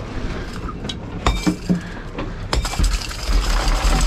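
A fish thumps and flaps on a boat deck.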